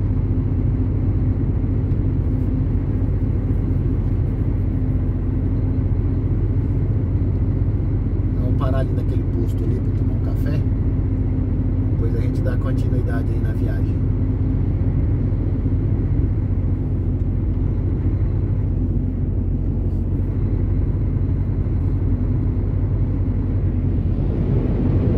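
Tyres roll steadily over the road surface.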